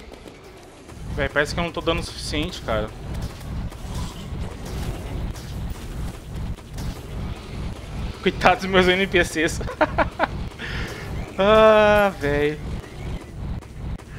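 Rapid electronic zaps fire in quick succession.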